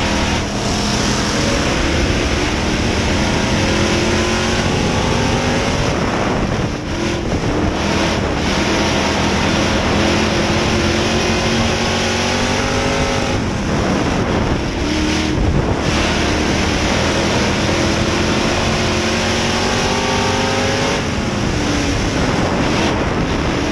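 Other race car engines roar close by.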